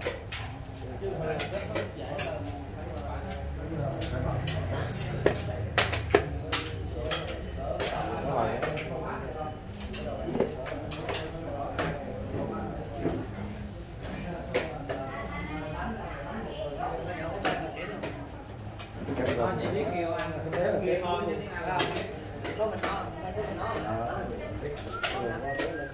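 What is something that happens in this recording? Elderly men talk calmly nearby.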